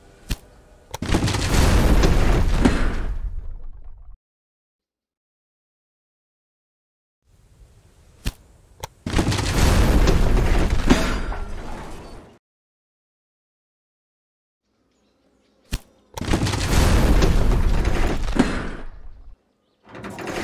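Low rumbling crashes of railway track being torn down come in bursts.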